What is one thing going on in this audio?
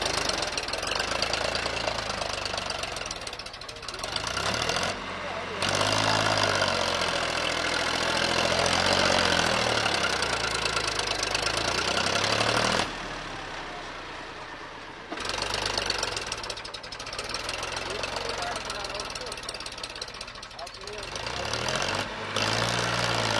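A tractor engine rumbles and revs hard, straining under load.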